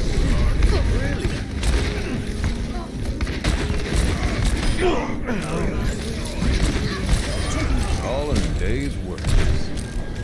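Rapid gunshots fire in a game.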